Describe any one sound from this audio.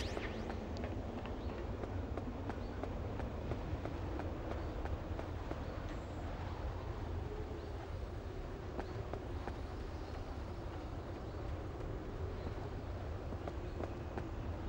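Rain and wind roar steadily outdoors.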